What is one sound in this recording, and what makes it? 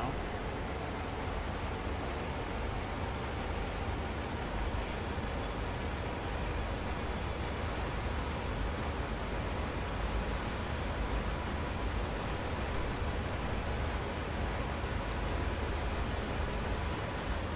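Train wheels roll and clatter on the rails.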